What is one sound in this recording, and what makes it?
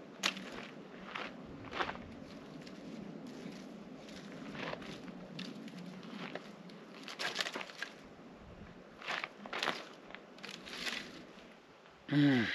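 A rake scrapes and scratches over dry dirt.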